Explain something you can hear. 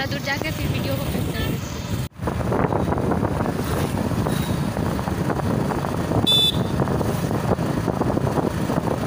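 Wind rushes past a moving rider.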